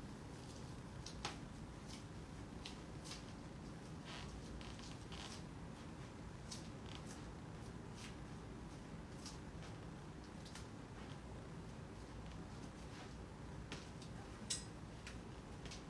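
Sandals tap softly on the floor.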